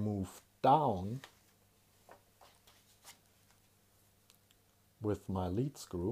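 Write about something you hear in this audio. Paper rustles as a sheet is handled.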